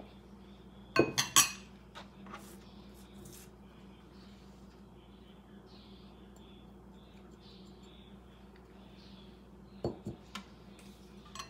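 A ceramic bowl knocks against another bowl.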